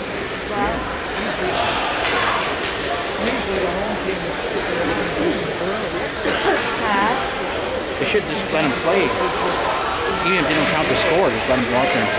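Skates scrape on the ice.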